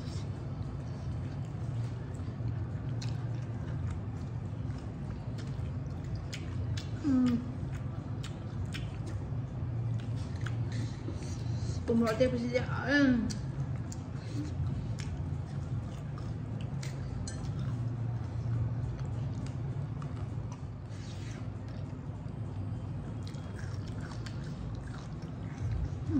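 A young woman chews and smacks food close to the microphone.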